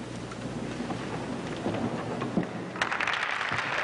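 A crowd murmurs and shuffles in a large echoing hall.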